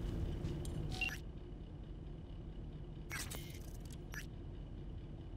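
A short electronic interface sound chimes.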